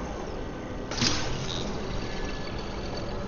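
A magical whoosh bursts out and rings.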